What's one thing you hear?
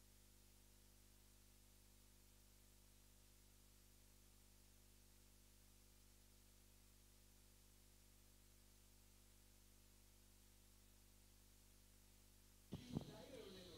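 An electronic keyboard plays a steady, held chord.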